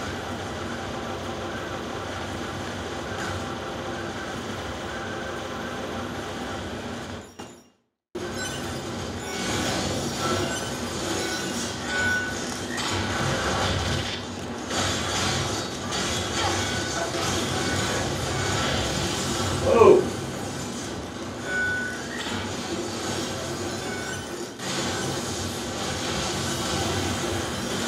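Magic blasts and explosions burst in a game.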